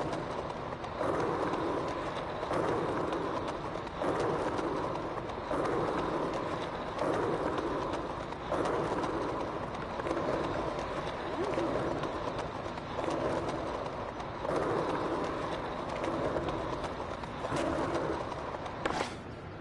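Skateboard wheels roll and rumble over paving stones.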